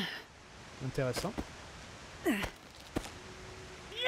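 Hands grab and pull on a dry branch.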